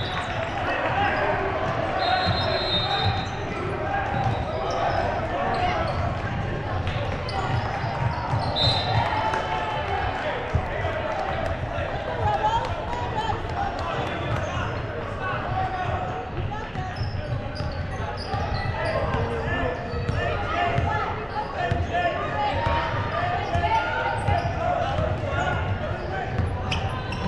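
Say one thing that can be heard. A crowd of spectators chatters throughout a large echoing gym.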